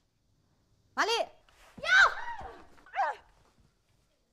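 A young woman cries out loudly nearby.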